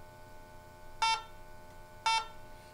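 A gas detector gives two short, loud electronic beeps.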